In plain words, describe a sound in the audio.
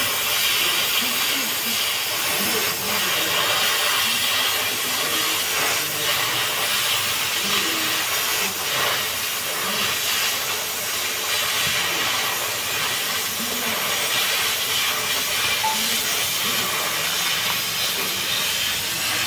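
Sparks crackle as a cutting torch burns through steel plate.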